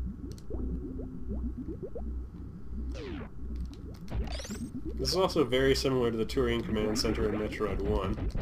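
Electronic game music plays with a steady pulsing beat.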